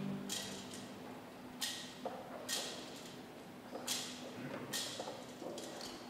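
A metal censer's chains clink as it swings.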